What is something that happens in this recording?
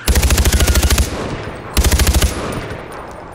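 A rifle fires rapid bursts that echo outdoors.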